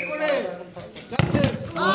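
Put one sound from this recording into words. A foot kicks a ball with a thud.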